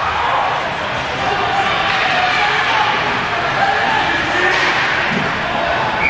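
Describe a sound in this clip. A crowd cheers and shouts loudly in an echoing arena.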